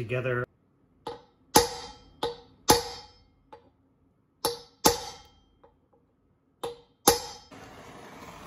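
A metal rod is tapped with sharp, ringing knocks.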